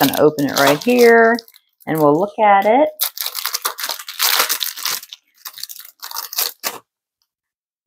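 A cellophane sleeve crinkles as it is handled.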